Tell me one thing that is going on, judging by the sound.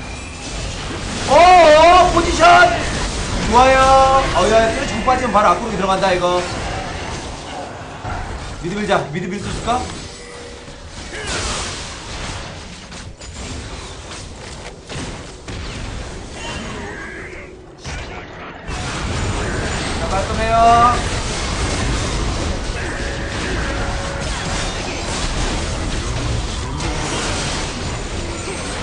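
Game sound effects clash and zap.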